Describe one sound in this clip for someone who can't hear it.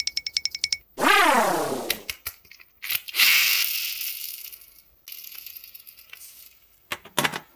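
A toy chicken plays loud electronic sounds.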